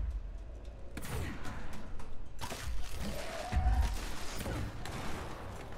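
A mass bursts apart with a rushing whoosh.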